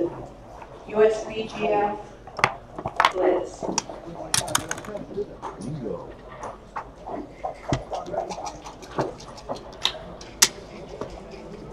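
Plastic game pieces click as they are set down on a board.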